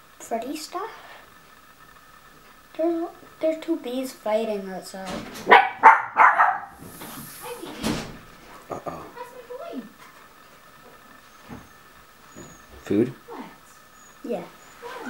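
A young boy talks quietly and hesitantly, close by.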